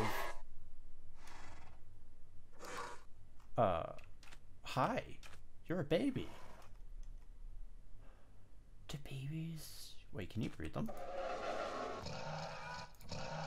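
A skeletal horse gives short, eerie whinnying cries.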